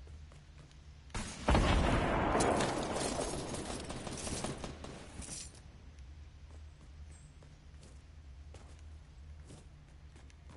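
Footsteps patter quickly across a wooden floor.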